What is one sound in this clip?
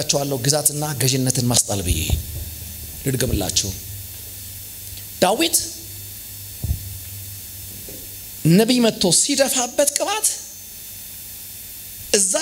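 A young man preaches with animation into a microphone, heard through loudspeakers with pauses between phrases.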